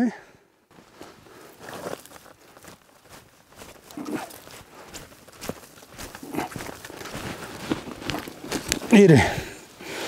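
Dry brush rustles and snaps as a man handles it.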